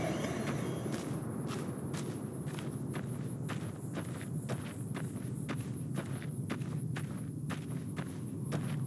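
Footsteps crunch steadily over loose gravel.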